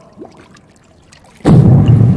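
Water splashes and sloshes.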